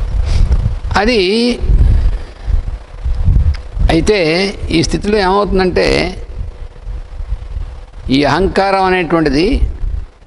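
An elderly man chants in long, drawn-out phrases into a close microphone.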